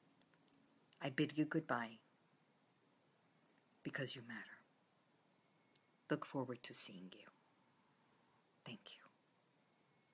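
A woman speaks warmly and close up to the microphone, in short bursts with pauses.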